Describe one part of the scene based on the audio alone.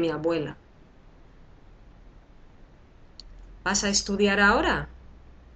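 A young woman speaks calmly and close to the microphone.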